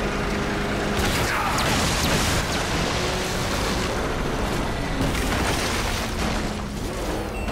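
Loud explosions boom and crackle.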